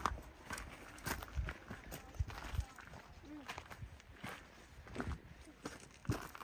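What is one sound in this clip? Footsteps crunch on loose gravel and rock.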